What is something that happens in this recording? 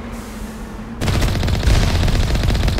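A cannon shell explodes with a loud boom.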